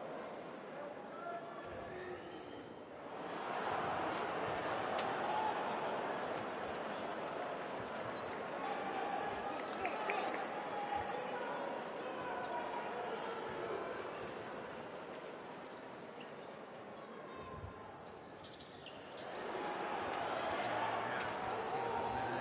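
A large crowd cheers and chants in a big echoing arena, swelling loudly at times.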